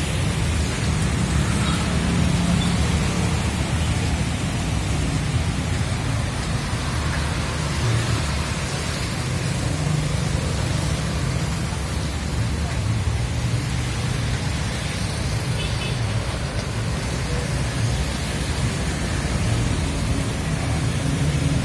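Motorbike engines rumble past close by.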